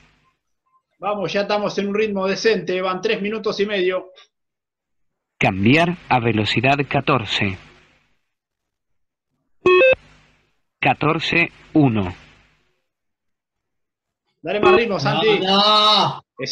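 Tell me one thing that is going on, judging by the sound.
A man speaks through an online call, in short bursts.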